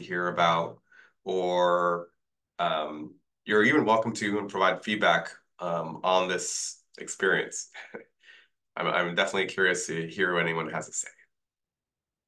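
A young man speaks calmly and with animation into a microphone on an online call.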